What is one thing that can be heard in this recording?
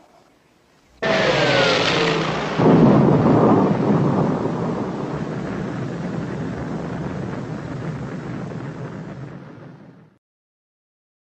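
An explosion booms and rumbles, slowly fading away.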